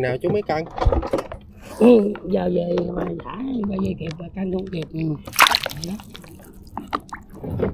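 Fish thrash and splash in a net in water.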